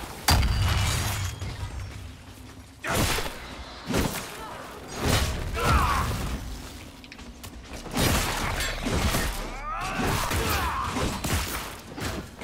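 Magic bolts crackle and zap.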